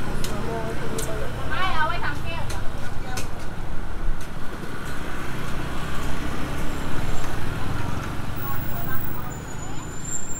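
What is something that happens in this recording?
Motor scooters hum past on a nearby street.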